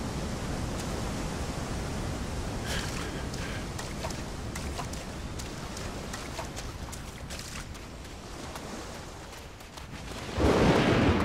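Footsteps run quickly over sand.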